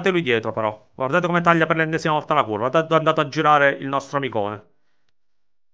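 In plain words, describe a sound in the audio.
A man speaks with animation through a headset microphone.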